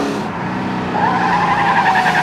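Tyres squeal as a car slides around a bend.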